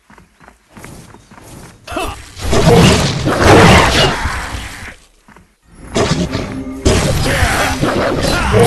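Loud blasts and weapon strikes crash in a fight.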